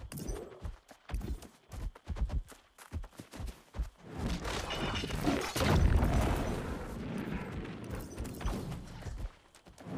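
Sword blows strike a bear with sharp thuds.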